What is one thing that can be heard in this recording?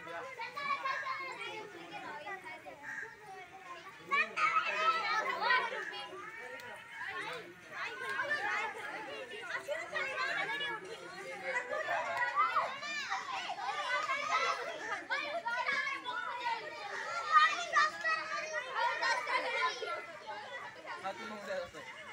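Children shout and chatter excitedly nearby.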